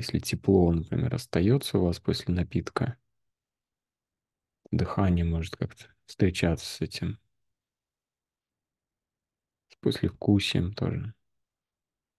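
A man speaks calmly over an online call, in short bursts with long pauses.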